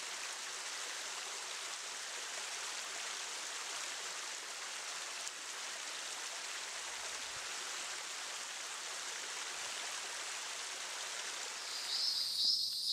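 A small stream trickles and splashes over rocks.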